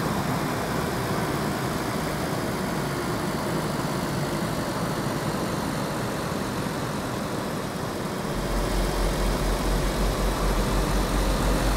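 Tyres roll on asphalt with a steady rushing noise.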